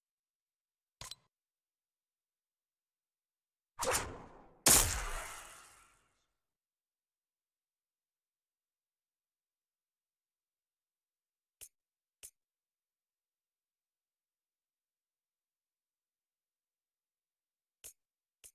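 Short menu clicks sound now and then.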